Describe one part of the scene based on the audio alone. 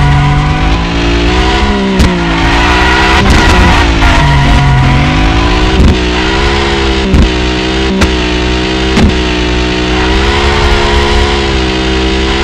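A car engine revs hard and rises and falls in pitch.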